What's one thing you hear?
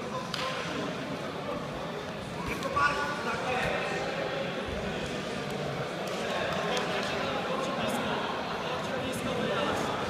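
Two wrestlers grapple and thump on a soft mat.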